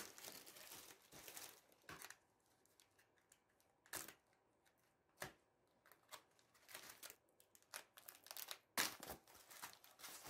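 Cardboard scrapes and flaps as it is pulled open.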